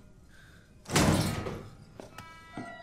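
A heavy door unlatches and swings open.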